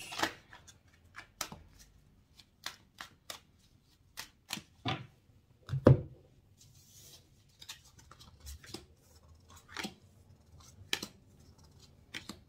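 Playing cards tap and click softly on a table.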